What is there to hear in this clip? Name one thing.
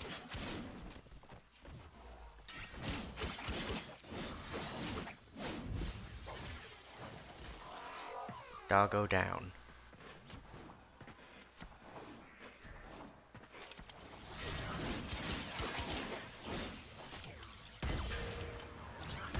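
Gunshots crack repeatedly.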